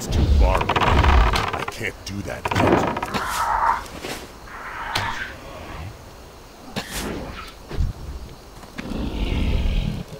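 A large beast roars and growls.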